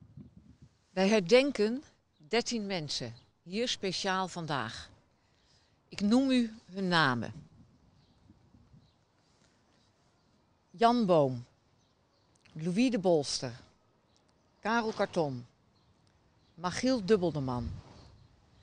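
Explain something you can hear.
An elderly woman speaks slowly and solemnly into a microphone outdoors, in short phrases with pauses.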